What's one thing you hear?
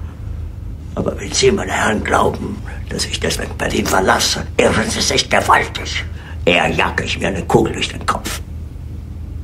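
A middle-aged man speaks harshly and with rising anger.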